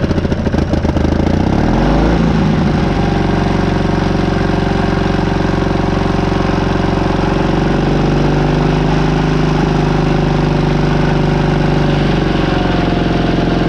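A diesel engine revs up and settles back as its throttle is worked.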